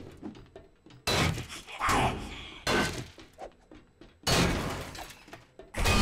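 A pickaxe strikes a metal door with heavy clanks.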